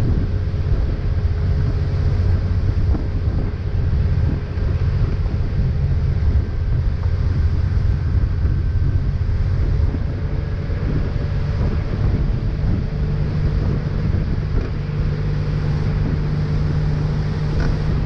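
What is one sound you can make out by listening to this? Water rushes and churns in the boat's wake.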